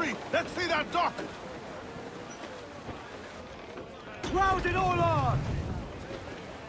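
Waves wash softly against a wooden ship's hull.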